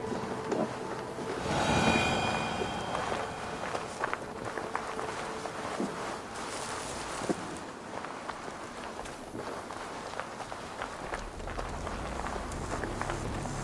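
Footsteps crunch softly over dirt and wooden boards.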